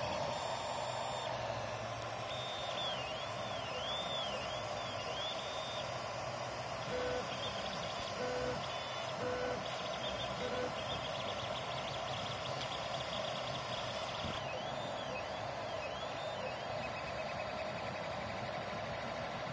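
Stepper motors whine and buzz in shifting, gliding tones as a printer head moves back and forth.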